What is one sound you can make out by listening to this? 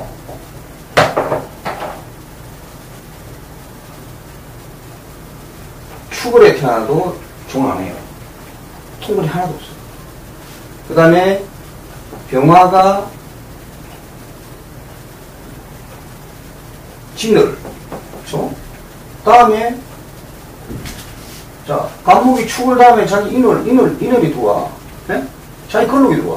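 A middle-aged man speaks calmly in short phrases, close by.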